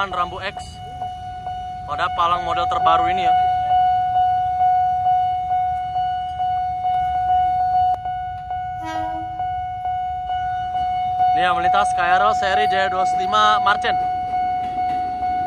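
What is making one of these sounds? A railway crossing bell dings rapidly and steadily.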